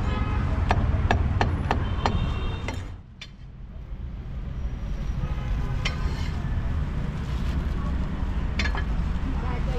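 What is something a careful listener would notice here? A cleaver chops sharply on a wooden block.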